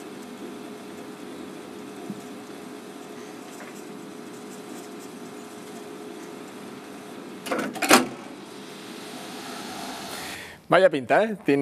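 A tape machine's reels turn.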